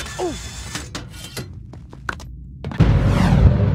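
Quick footsteps patter on a stone floor.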